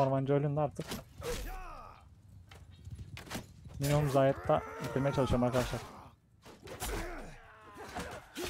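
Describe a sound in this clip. Metal weapons strike with sharp clangs.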